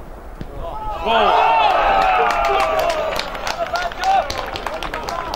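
Spectators cheer loudly outdoors after a goal.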